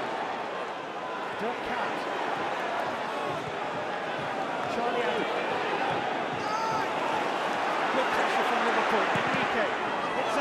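A large stadium crowd chants and roars steadily, growing louder.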